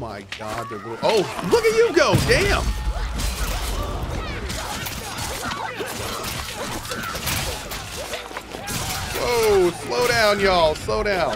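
Swords clash and magic blasts crackle in a fight.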